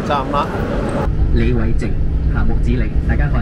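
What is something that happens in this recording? A man speaks calmly through a microphone and loudspeaker.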